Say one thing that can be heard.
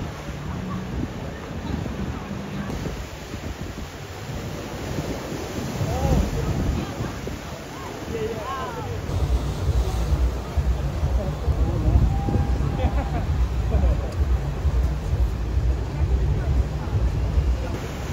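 Wind blows across an open space outdoors.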